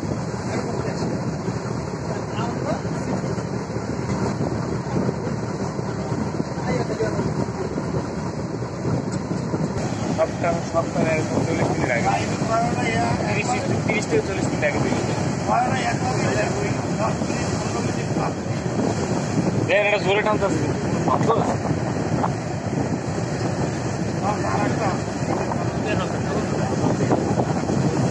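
A ship's engine rumbles steadily across the water.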